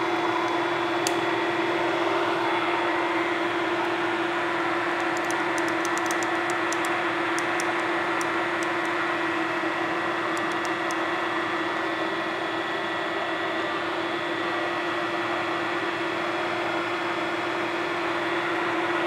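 A drill press whirs steadily as its bit bores into metal.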